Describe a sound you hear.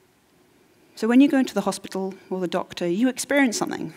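A woman speaks with animation into a microphone in a large hall.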